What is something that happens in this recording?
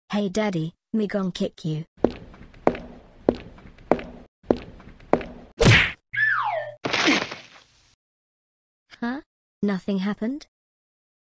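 A young girl speaks with animation.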